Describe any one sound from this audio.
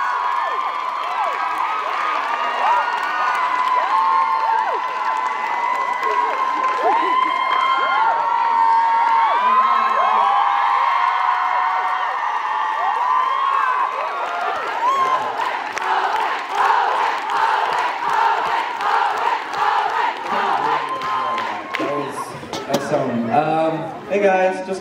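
An audience cheers and shrieks loudly in a large hall.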